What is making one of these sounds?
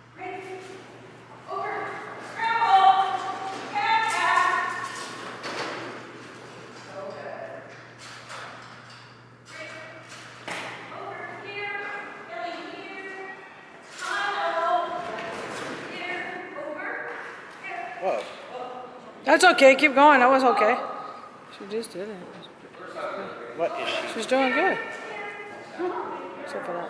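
A woman calls out to a dog with animation in a large echoing hall.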